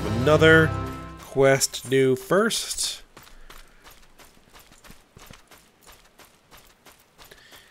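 Footsteps pad quickly through grass.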